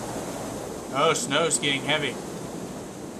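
A young man speaks briefly into a close microphone.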